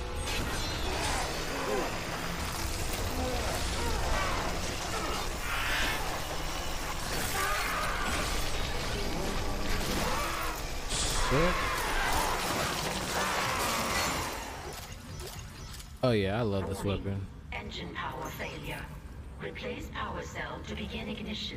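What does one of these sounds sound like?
A young man talks into a microphone with animation, close by.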